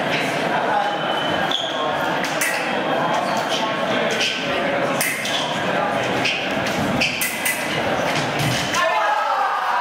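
Footsteps squeak and thud on the floor.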